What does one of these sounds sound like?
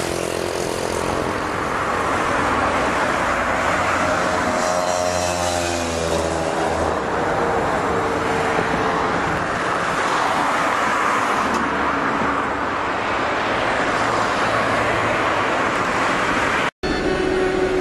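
Tyres roll steadily along a road as a car drives.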